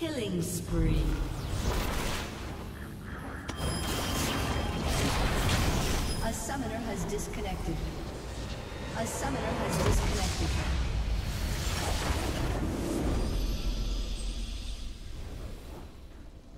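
Magic spells whoosh and crackle during a fast fight in a video game.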